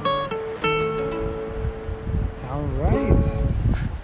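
An acoustic guitar is strummed.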